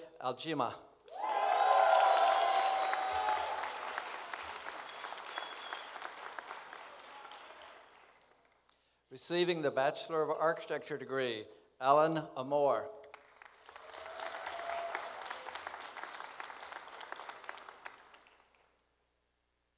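An audience applauds and then fades out.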